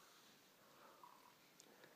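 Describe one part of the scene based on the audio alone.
A young man gulps down a drink.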